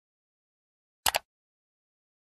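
A mouse button clicks twice.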